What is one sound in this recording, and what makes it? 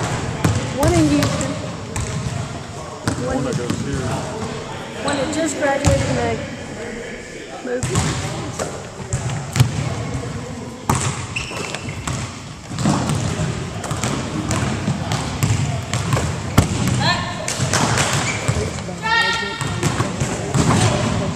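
A basketball bounces on a wooden floor in a large echoing gym.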